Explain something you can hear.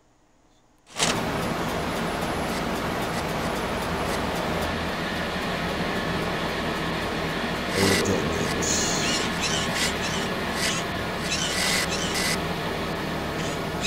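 A small toy car's motor buzzes steadily as it drives.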